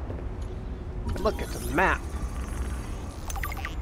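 An electronic scanner warbles briefly.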